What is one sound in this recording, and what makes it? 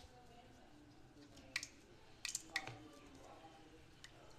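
Batter sizzles and crackles in hot oil.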